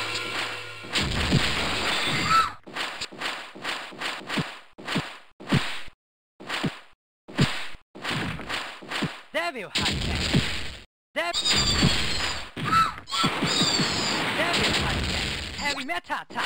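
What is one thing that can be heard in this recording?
Punches, kicks and blasts thud and crash in a fight game.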